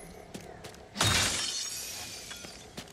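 A shimmering chime rings as an item is picked up.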